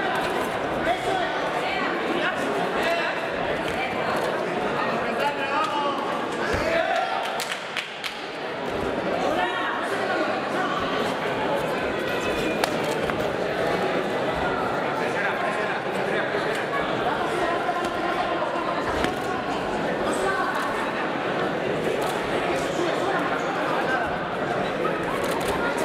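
Boxing gloves thud against each other and against bodies.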